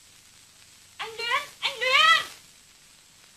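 A young woman calls out loudly in a high voice, outdoors.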